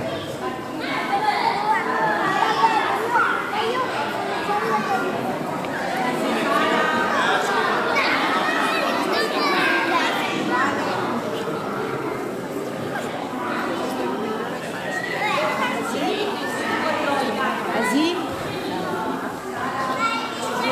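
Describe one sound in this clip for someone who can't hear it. A crowd of young children chatter and shout excitedly in a large echoing hall.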